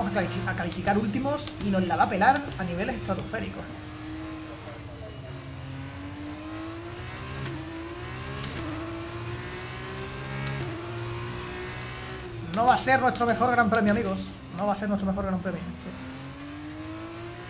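A racing car engine whines and rises and falls in pitch as gears change.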